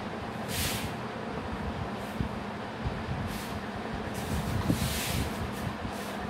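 A cloth rubs across a whiteboard, wiping it.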